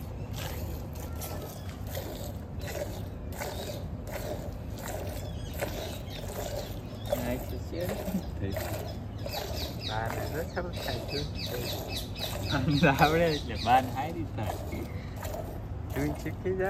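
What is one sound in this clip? Milk squirts rhythmically into a metal pail.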